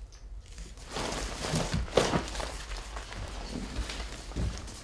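An inflatable plastic doll squeaks and rustles as it is handled and dragged.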